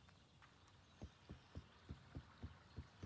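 Footsteps thud quickly on a wooden bridge.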